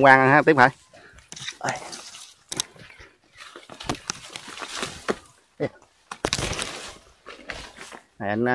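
Footsteps rustle through dry leaves and brush.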